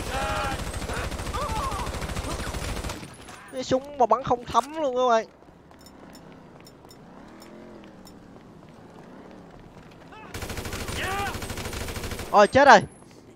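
An automatic rifle fires rapid bursts of shots.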